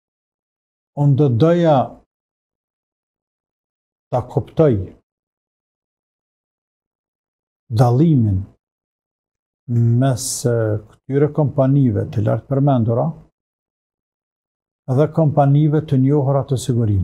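An elderly man speaks calmly and clearly into a close microphone, with pauses.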